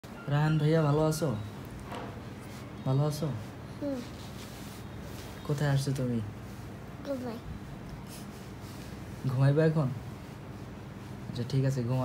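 A young man talks softly and playfully up close.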